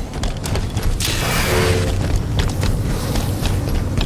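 An energy sword swings with a sharp whoosh.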